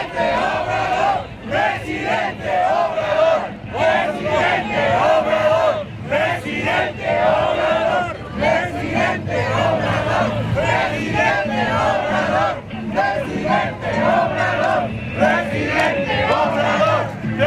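Cars and vans drive past on the street.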